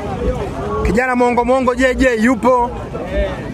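A man speaks loudly close by, over the crowd.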